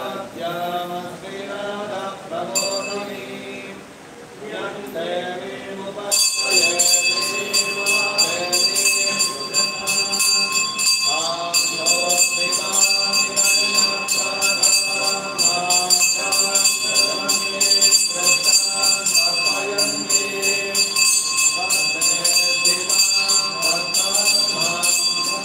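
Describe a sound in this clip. An elderly man chants in a steady sing-song voice.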